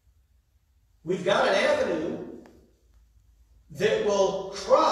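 A man speaks through a microphone and loudspeakers in an echoing hall.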